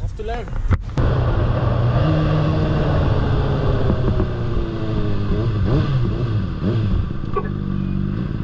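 A motorcycle engine hums steadily and its pitch rises and falls as it rides.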